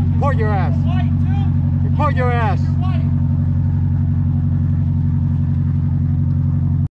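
A motorboat engine hums steadily in the distance.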